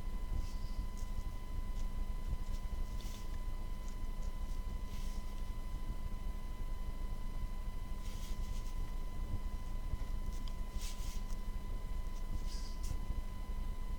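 A pen scratches briefly on paper now and then.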